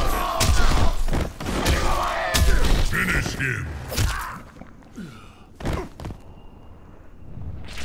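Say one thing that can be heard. Heavy blows and thuds land in a fight.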